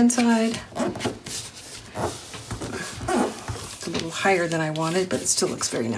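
A bone folder scrapes along a paper fold.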